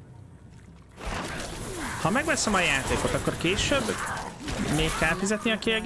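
Game combat sounds clash and whoosh.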